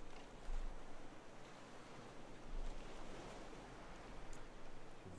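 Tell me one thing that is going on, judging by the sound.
Ocean waves lap gently and steadily.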